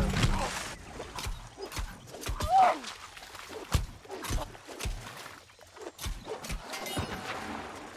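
Blades strike and clash in a fight.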